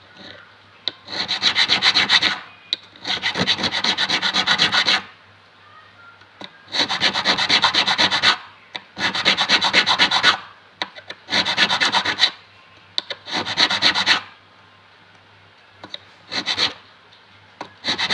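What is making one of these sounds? A metal file rasps in quick, rough strokes across a fret, in bursts with short pauses.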